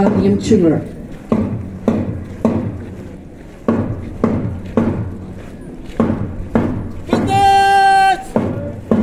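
Boots stamp in a steady marching rhythm on hard ground.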